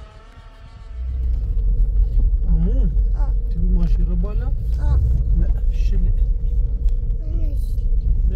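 A car engine rumbles loudly from inside the car.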